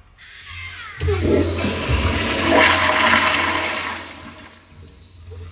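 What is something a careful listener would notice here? A toilet flushes with a loud rush of water that slowly fades.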